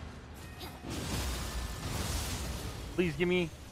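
A loud magical blast whooshes and roars.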